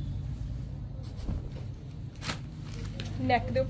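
Cloth rustles softly as hands handle it.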